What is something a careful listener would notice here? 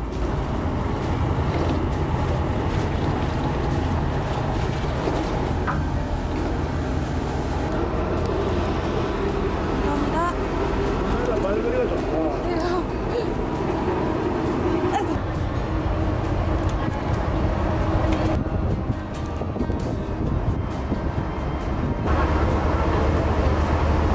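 Wind blusters steadily outdoors.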